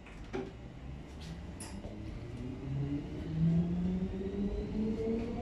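A train's electric motor whines, rising in pitch as it speeds up.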